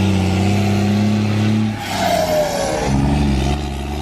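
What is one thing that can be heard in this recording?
Tyres scrape and squeal on asphalt as a truck turns.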